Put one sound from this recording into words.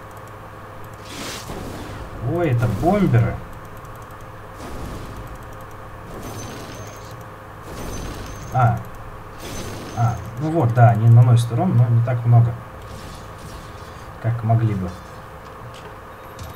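Game weapons clash and spells burst in a battle.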